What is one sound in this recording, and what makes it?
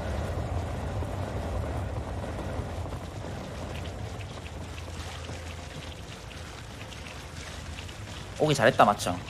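Magic spells crackle and clash in a game battle.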